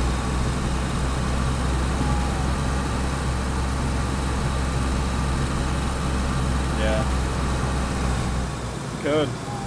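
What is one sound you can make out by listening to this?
A car engine rumbles steadily while driving.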